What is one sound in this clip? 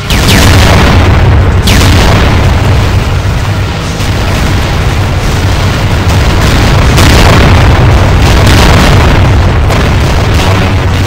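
Laser guns zap and buzz steadily in a loud video game battle.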